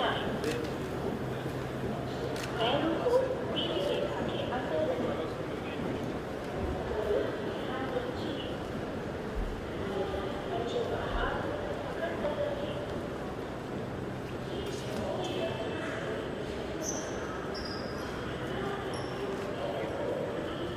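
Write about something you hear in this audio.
A crowd of men chatters nearby in an echoing hall.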